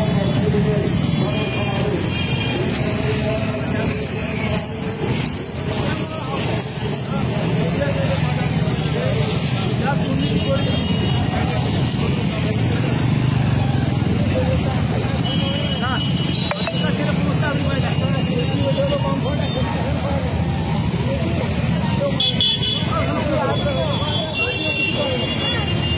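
A crowd of men shout and chant outdoors.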